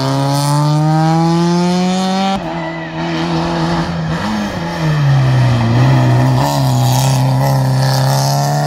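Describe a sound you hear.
A rally car engine revs hard at full throttle, drops as the car slows for a hairpin, then shifts up and accelerates away.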